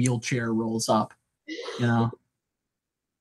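A young man speaks casually over an online call.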